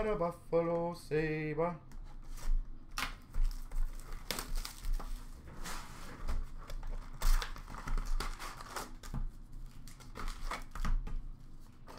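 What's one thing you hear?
Cardboard boxes rustle and tap as they are handled.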